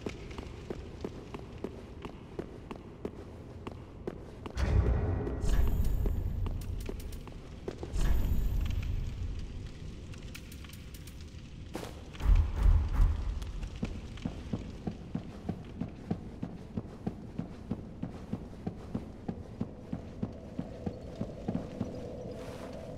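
Quick footsteps run on stone.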